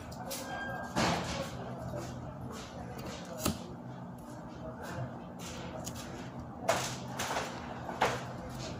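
Small objects knock and tap on a table.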